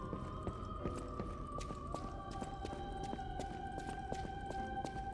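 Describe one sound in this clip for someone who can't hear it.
Quick footsteps run across a hard stone floor.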